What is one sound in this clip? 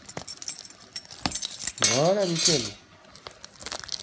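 A bunch of keys clinks down onto a wooden table.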